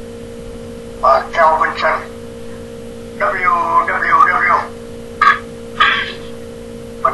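A man speaks nearby in short phrases.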